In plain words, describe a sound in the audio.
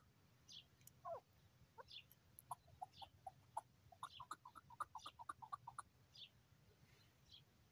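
A bird calls with high, falling whistles.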